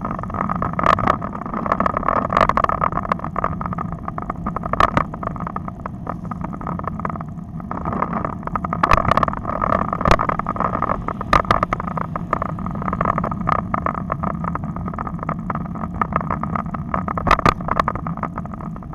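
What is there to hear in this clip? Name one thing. Road bike tyres hum and thump over concrete pavement.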